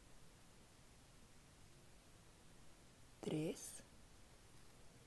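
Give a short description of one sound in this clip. A crochet hook softly rustles through yarn.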